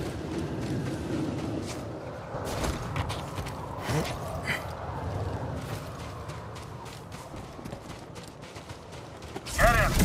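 Footsteps crunch on sand as a person runs.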